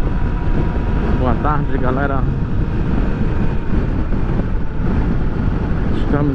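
Wind roars against the rider.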